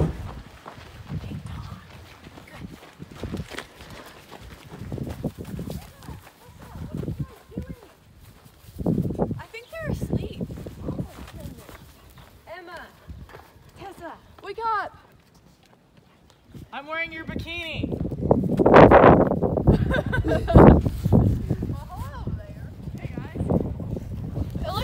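Young women talk and laugh nearby with animation.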